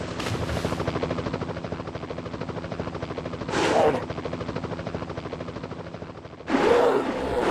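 A helicopter's rotor chops.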